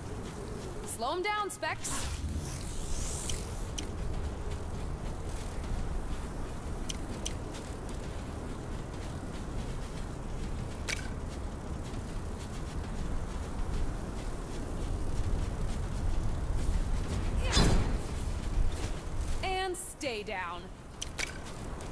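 A sci-fi energy blast zaps with a rising, warbling whine.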